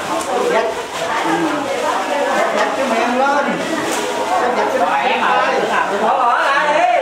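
A crowd of women chatter loudly all around, close by.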